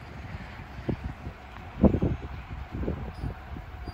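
A distant train rumbles as it approaches.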